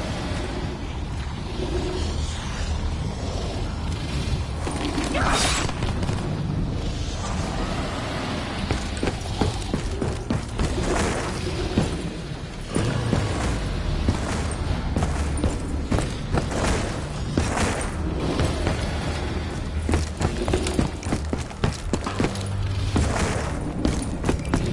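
Gunshots crack rapidly in bursts.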